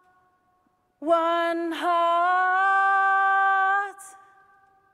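A young woman sings a long, powerful note in a large echoing hall.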